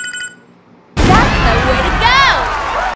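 Loud game music and sound effects blare from a loudspeaker.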